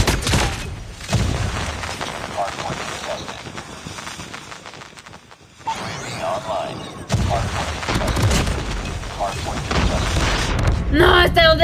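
Video game gunfire rattles in rapid bursts.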